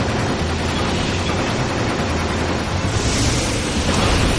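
Laser shots fire in rapid bursts.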